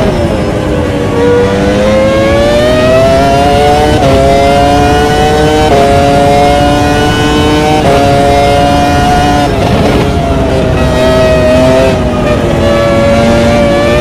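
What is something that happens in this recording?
A racing car engine screams, rising in pitch and dropping sharply with each gear change.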